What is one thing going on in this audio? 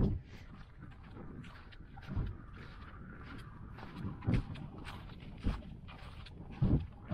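Boots crunch on snow at a steady walking pace.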